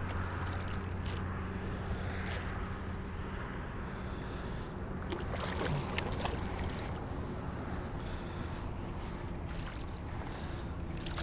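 Water splashes and ripples around legs wading through shallows.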